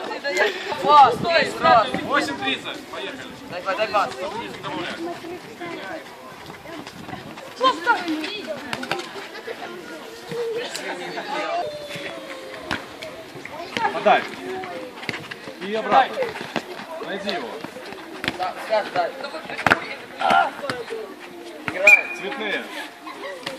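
Teenage boys shout to each other while playing football outdoors.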